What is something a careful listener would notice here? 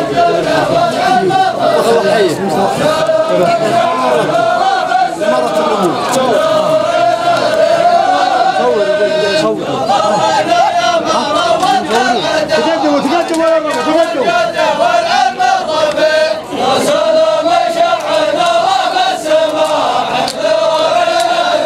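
A large group of men chant together in unison outdoors.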